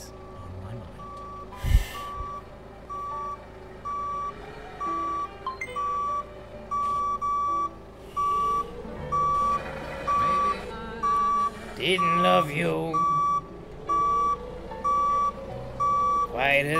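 A forklift's reversing alarm beeps at a steady pace.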